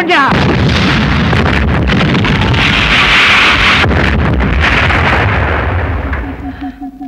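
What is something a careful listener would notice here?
An explosion booms and rumbles loudly.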